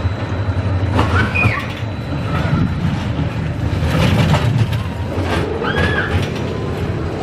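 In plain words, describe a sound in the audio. Roller coaster wheels screech on curves.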